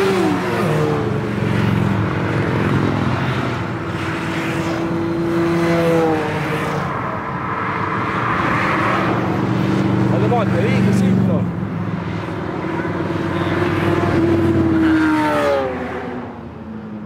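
Motorcycle engines roar loudly as they pass close by, one after another.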